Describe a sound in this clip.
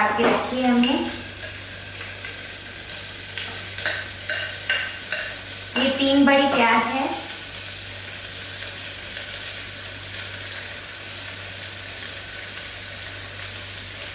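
A metal spoon clinks and scrapes against a glass bowl.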